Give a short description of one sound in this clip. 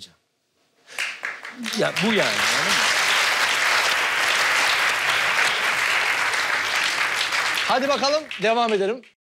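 A studio audience laughs and applauds loudly.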